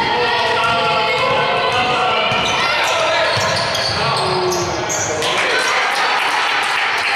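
A crowd in the stands cheers and calls out in an echoing hall.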